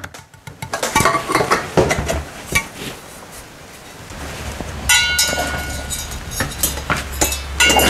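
Metal tools clink and tap against a motorcycle engine.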